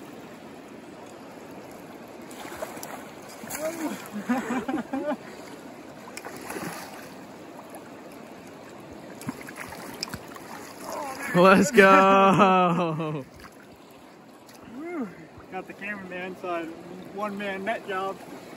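A river rushes and burbles steadily.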